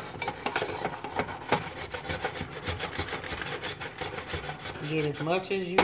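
A scrubbing pad scrubs rapidly against a metal drip pan.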